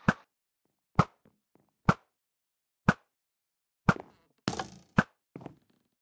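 A bow twangs sharply as arrows are shot, again and again.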